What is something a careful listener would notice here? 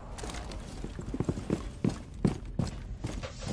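A rifle fires a quick burst of gunshots.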